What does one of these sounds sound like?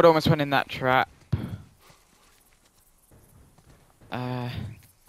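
Footsteps crunch softly over grass and dirt.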